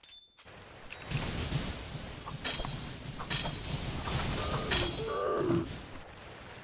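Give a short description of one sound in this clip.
Magic spells whoosh and burst in a video game battle.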